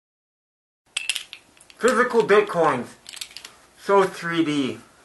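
A man speaks close by in a muffled voice.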